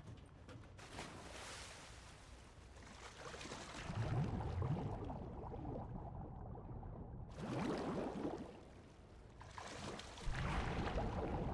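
Water splashes as a figure swims.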